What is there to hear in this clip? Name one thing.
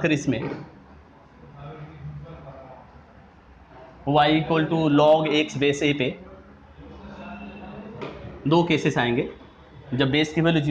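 A man explains calmly and clearly, close by.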